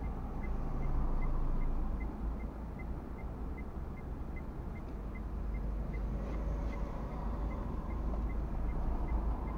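Cars drive past across the junction nearby.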